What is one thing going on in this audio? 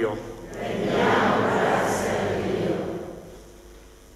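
A man reads aloud through a microphone in an echoing hall.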